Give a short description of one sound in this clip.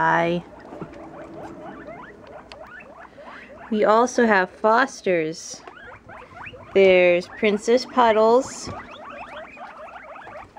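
A guinea pig squeals in loud, repeated high whistles.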